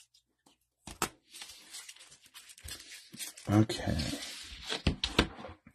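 A card case taps down on a table.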